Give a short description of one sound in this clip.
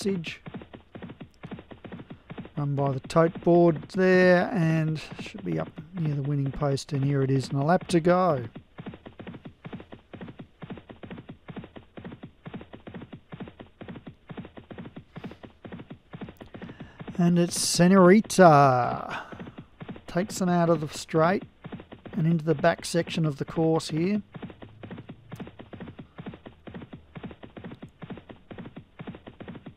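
Horses' hooves drum rapidly on turf.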